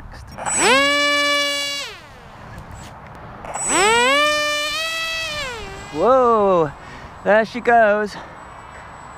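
A small electric motor and propeller whine loudly, revving up and down in short bursts.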